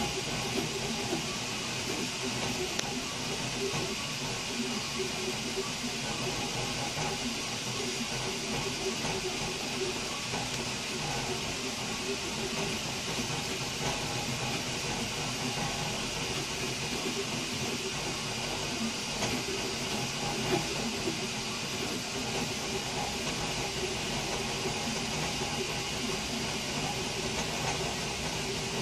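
A 3D printer's motors whir and hum in quick changing tones as the print head moves back and forth.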